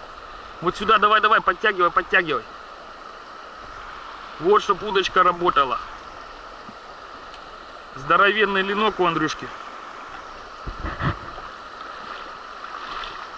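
River water flows and ripples steadily nearby.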